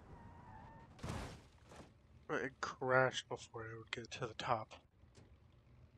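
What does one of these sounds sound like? A car crashes with loud crunching thuds.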